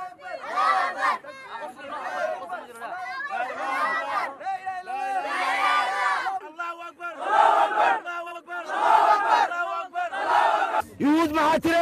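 A group of children chant loudly together.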